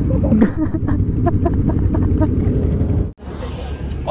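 Motorcycle engines rumble and idle close by.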